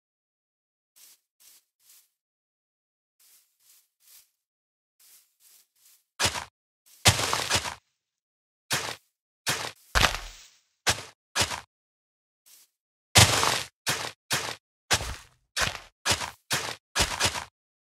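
Blocks break with short, repeated crunching thuds.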